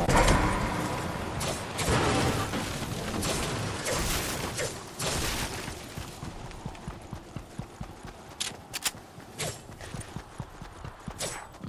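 Footsteps run quickly on a road and grass.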